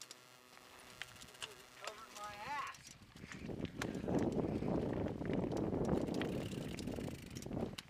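Mountain bike tyres crunch over a rocky dirt trail.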